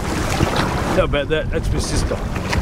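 A middle-aged man talks close by, half drowned by wind.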